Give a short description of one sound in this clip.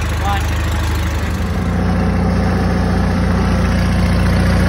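A lawn tractor engine revs up slightly and runs louder.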